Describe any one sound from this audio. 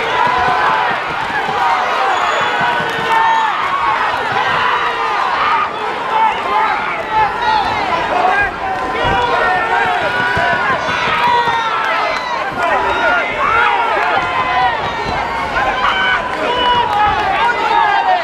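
A crowd of spectators shouts and cheers loudly throughout.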